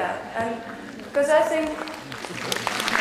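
A young woman speaks through a microphone.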